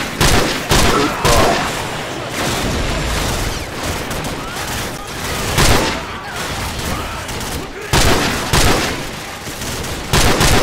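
Rifle shots crack loudly, one after another.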